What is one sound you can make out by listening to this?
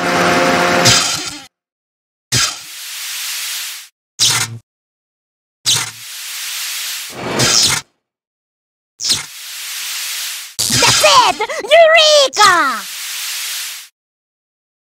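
Electric sparks crackle and hiss in short bursts.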